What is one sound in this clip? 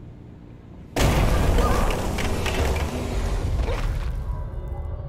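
Debris crashes and rumbles loudly.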